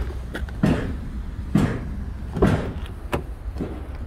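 A car door latch clicks as the door is pulled open.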